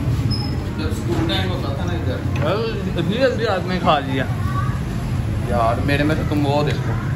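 A young man speaks nearby.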